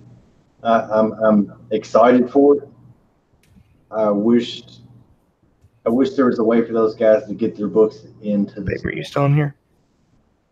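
A man talks casually over an online call.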